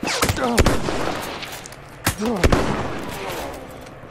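A rifle bolt clacks as a rifle is reloaded.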